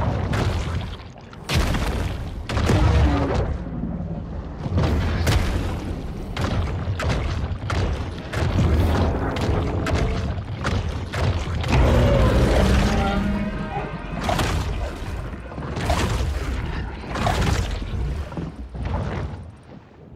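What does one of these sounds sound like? Water churns and rumbles deeply underwater.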